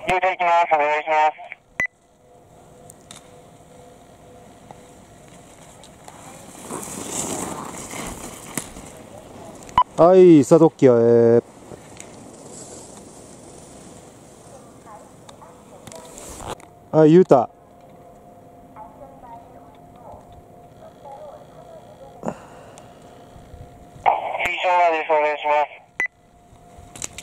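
Skis scrape and hiss over hard snow in quick turns.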